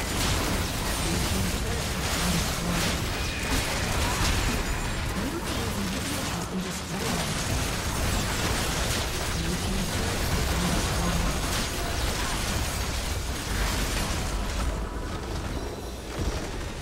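Game spells and attacks crackle and boom in a busy battle.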